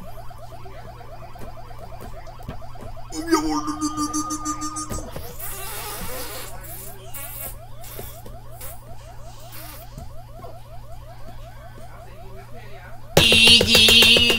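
Arcade game music and sound effects play through a television speaker, with a repeating warbling siren tone.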